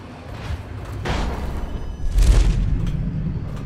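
A short magical whoosh rushes past.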